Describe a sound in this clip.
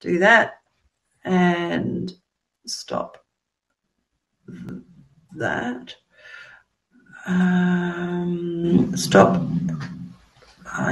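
A middle-aged woman speaks calmly through an online call, in short phrases with pauses.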